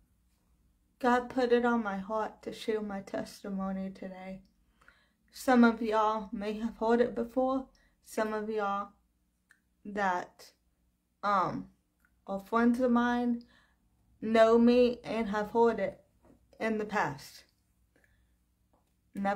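A young woman speaks calmly and close to the microphone, in short phrases with pauses.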